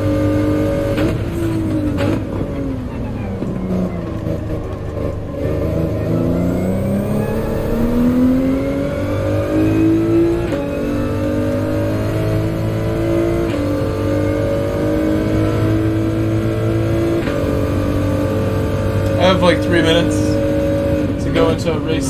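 A racing car engine revs up and down through the gears.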